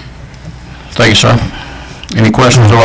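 A man speaks calmly into a microphone, heard through a loudspeaker system.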